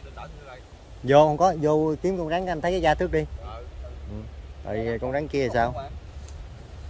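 Men talk calmly nearby, outdoors.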